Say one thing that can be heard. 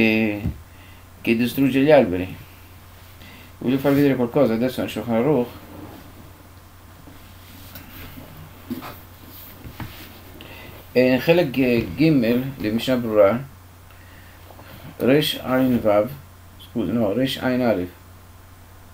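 An elderly man speaks calmly and slowly, with long pauses.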